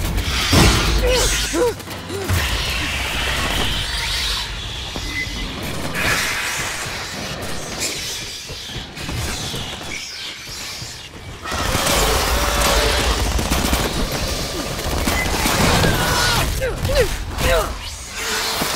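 A creature lets out shrill shrieks.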